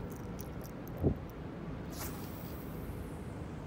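A fishing line whizzes out as a rod is cast.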